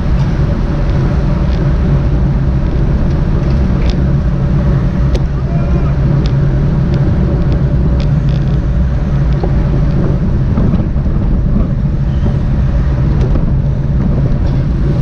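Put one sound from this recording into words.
Bicycle tyres hum on the road.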